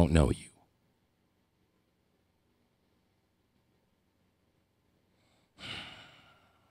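An elderly man speaks calmly and closely into a microphone.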